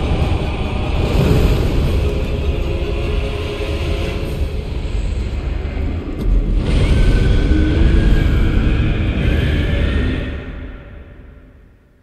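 Fire roars and crackles in a loud burst of flames.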